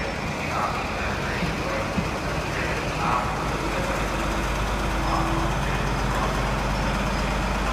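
A diesel train rumbles steadily as it pulls along the track.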